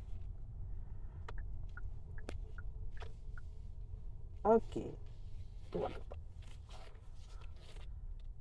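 A car's engine and tyres rumble low and steady from inside the car.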